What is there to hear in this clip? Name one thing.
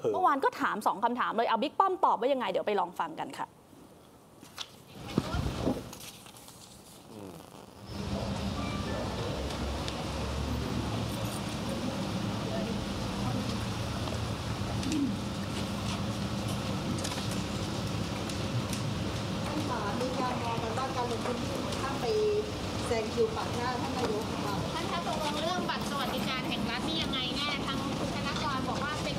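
A crowd of men and women talk over one another close by.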